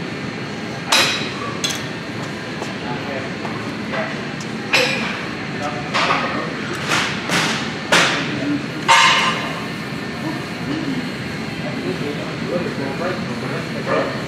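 Weight plates clank on a cable machine.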